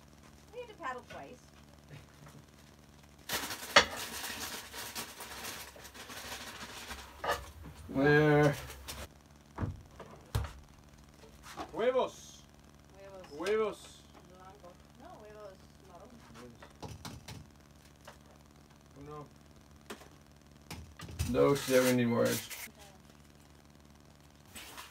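Dishes and utensils clink and knock.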